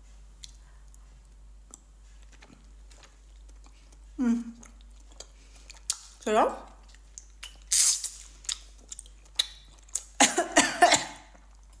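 A young woman chews and slurps food.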